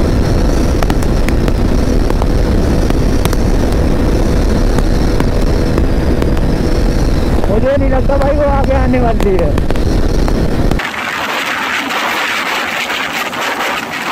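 A motorcycle engine hums steadily at high speed.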